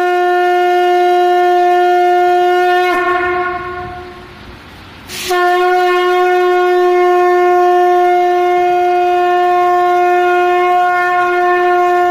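A conch shell is blown in a long, steady, loud note.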